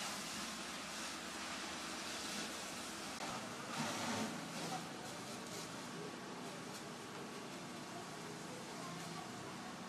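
A jet of water hisses and splashes.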